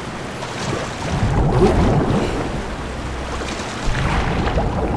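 Water sloshes and splashes as someone swims.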